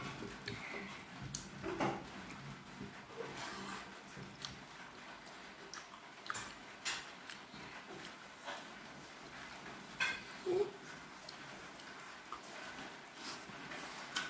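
A man chews and smacks his lips close by.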